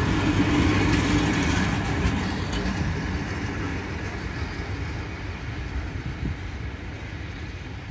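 A passenger train rumbles past on the tracks close by and fades into the distance.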